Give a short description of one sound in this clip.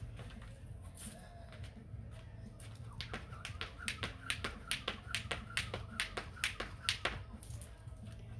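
A jump rope slaps the ground in a quick, steady rhythm.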